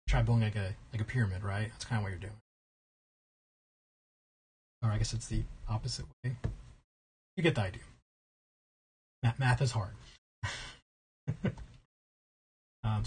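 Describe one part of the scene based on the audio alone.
A man talks with animation into a close microphone, in short bursts with pauses.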